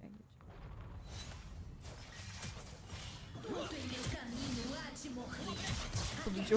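Game effects whoosh and crackle during a fight.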